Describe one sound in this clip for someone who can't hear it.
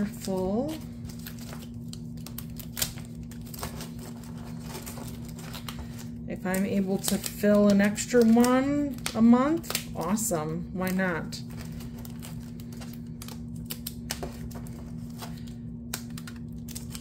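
Paper bills rustle and flick as a stack is counted by hand.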